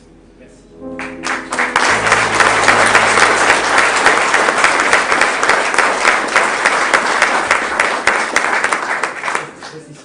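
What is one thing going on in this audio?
An audience applauds loudly in a room.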